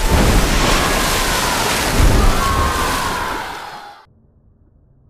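Gas hisses loudly as it sprays out in a burst.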